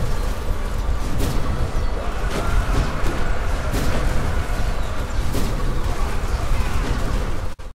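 Armoured soldiers clash in a loud battle.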